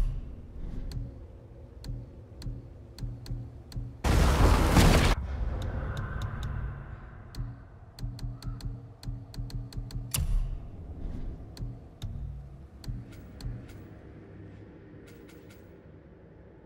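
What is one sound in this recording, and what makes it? Soft menu clicks tick again and again.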